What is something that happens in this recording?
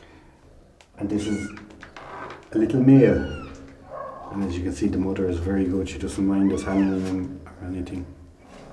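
A man talks softly and close by.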